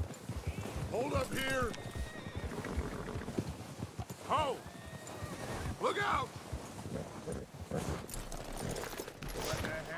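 Horse hooves crunch and thud through deep snow.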